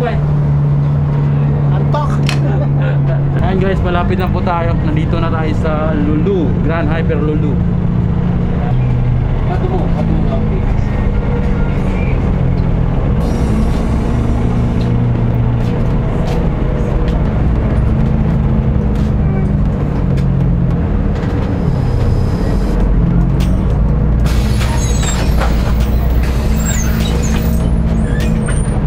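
A bus engine hums low and steady inside the cabin.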